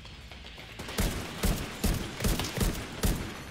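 A rifle fires loud single shots in quick succession.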